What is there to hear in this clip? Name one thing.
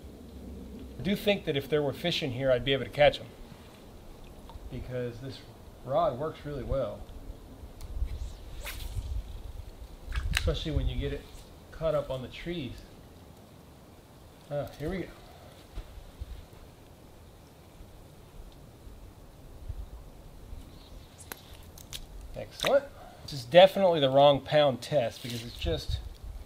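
A man talks calmly nearby, outdoors.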